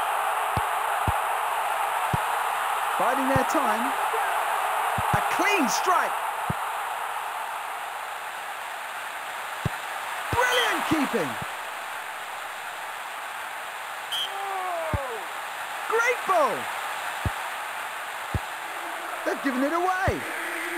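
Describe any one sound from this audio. A football is kicked with short, dull thuds.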